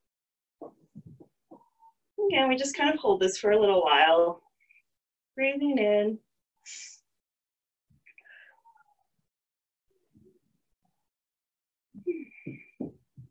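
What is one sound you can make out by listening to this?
A woman speaks calmly and clearly into a nearby microphone, in short bursts with pauses.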